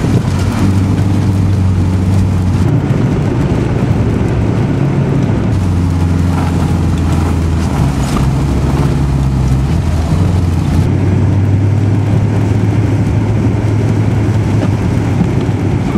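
A flat-four engine of a station wagon revs and eases off, heard from inside the car.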